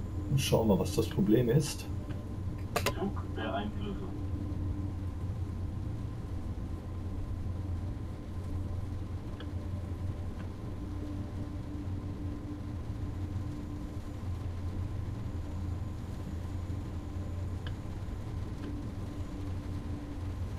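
A train rumbles low and steady along the tracks.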